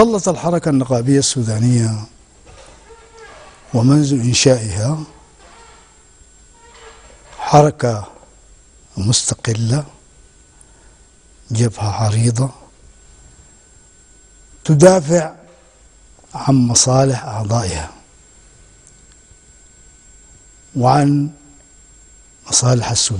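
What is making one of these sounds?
An elderly man speaks calmly into a microphone, with long pauses between phrases.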